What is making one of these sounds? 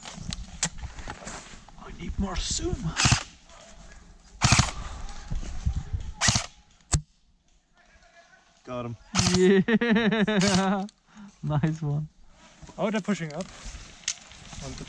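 An airsoft rifle fires sharp single shots close by.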